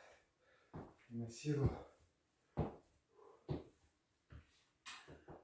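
Footsteps thud on a hollow floor.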